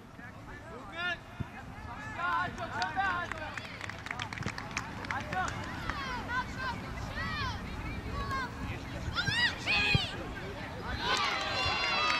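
Young players shout and call out to each other across an open field, from a distance.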